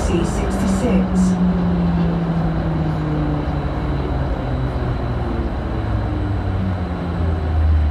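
A train's motor whines, its pitch slowly falling as it slows down.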